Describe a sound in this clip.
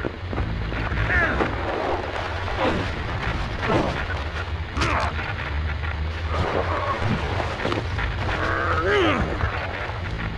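A creature screeches and growls up close.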